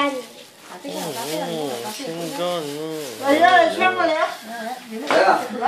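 A small group of adults and children sing together nearby.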